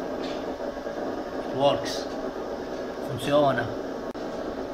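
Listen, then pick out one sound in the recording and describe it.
A man speaks briefly and casually, close by.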